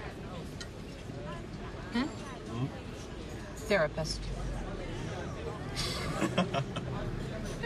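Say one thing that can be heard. A crowd murmurs softly in the background outdoors.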